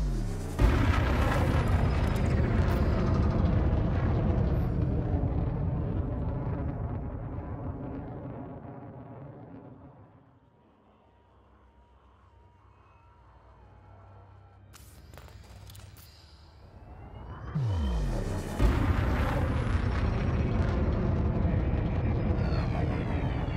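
A spaceship engine rumbles low and steady, fading away and then swelling up again.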